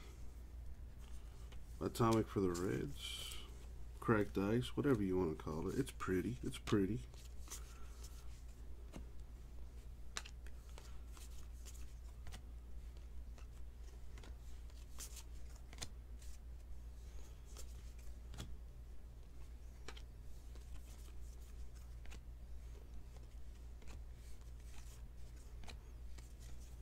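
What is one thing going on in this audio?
Trading cards rustle and flick softly as they are flipped through by hand.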